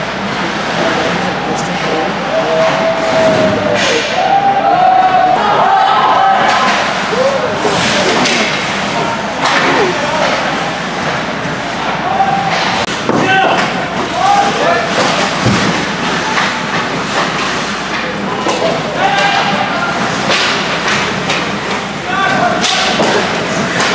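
Young men shout and call out, echoing in a large hall.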